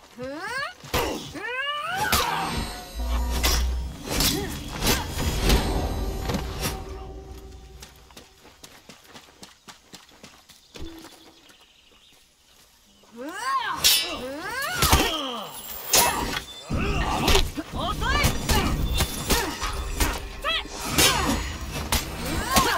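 Blades clash and strike with sharp metallic hits.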